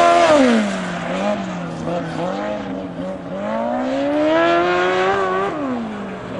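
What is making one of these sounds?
A small racing car engine revs up and down as the car speeds past nearby.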